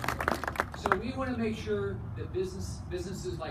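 An elderly man speaks calmly into a microphone over a loudspeaker outdoors.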